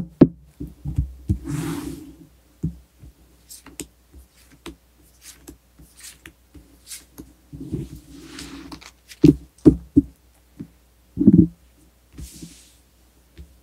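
Cards tap and click as they are handled.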